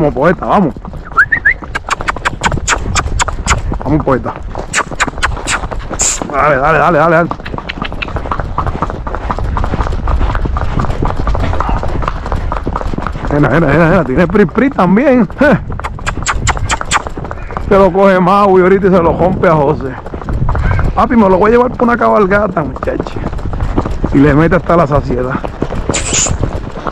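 Horse hooves clop steadily on pavement.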